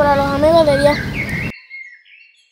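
A young boy speaks up close in a raised, sing-song voice.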